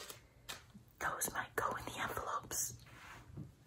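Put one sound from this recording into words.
A middle-aged woman speaks quietly, close to the microphone.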